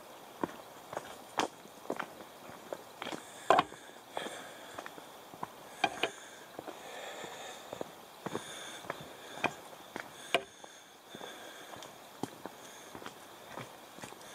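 A bicycle rattles and clanks over bumps and roots.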